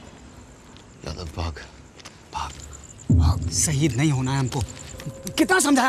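An older man speaks firmly at close range.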